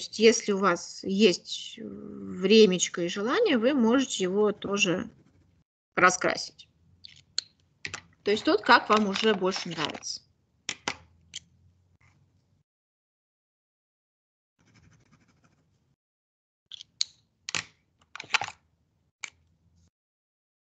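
A marker scratches on paper.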